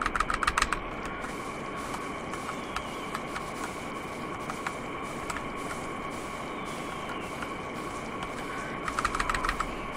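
Keyboard keys click rapidly up close.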